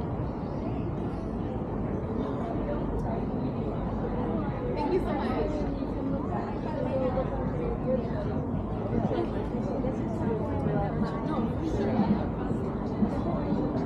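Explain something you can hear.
A crowd of men and women chatter nearby outdoors.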